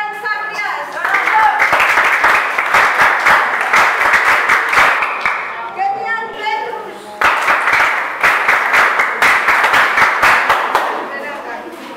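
A group of people clap their hands in loud bursts of applause.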